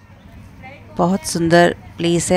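A woman speaks close to the microphone with animation.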